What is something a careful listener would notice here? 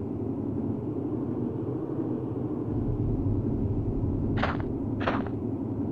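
A small fire crackles and burns steadily.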